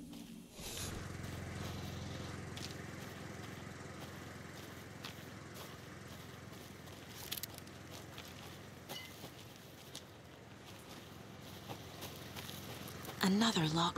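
Footsteps walk slowly over rough ground.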